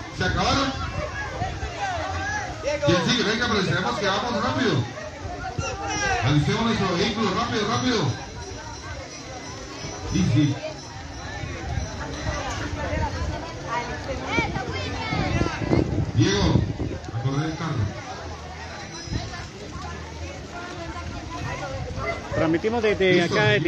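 A young man calls out loudly nearby.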